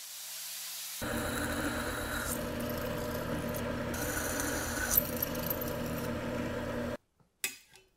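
A drill press whirs as it bores into a thin metal plate.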